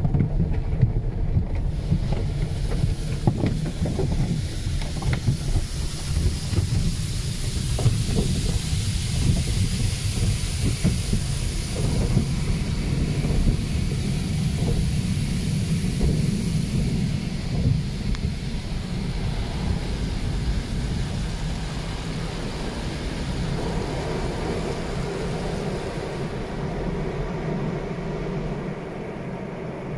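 Water sprays and drums hard on a car's windshield, heard from inside the car.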